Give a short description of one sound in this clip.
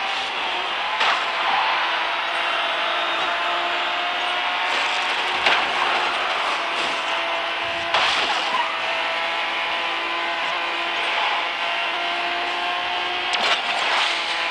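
Cars crash and bang into each other.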